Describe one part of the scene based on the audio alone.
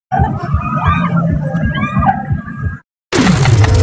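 Riders scream with excitement on a fairground ride.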